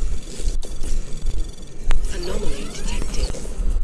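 An electronic alarm hums and warbles.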